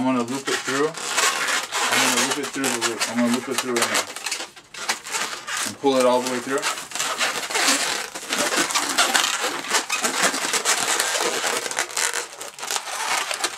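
Rubber balloons squeak and rub as they are twisted.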